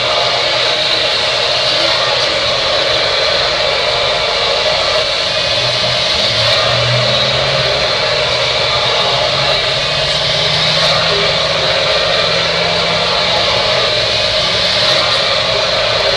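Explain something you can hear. A hair dryer blows with a steady, loud whirring roar close by.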